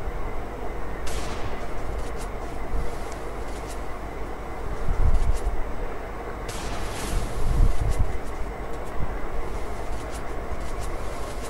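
Footsteps thud quickly on the ground as a game character runs.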